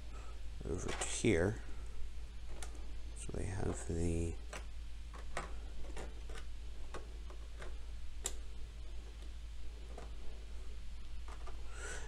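Small plastic figures tap and click as they are set down on a table.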